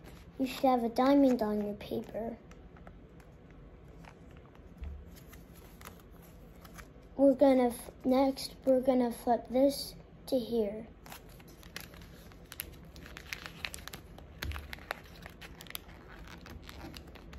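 Paper rustles and creases as it is folded.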